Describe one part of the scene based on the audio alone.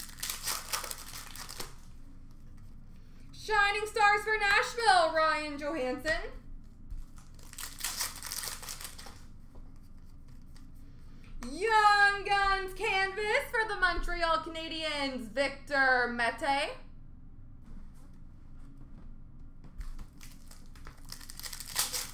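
A foil card wrapper crinkles and tears.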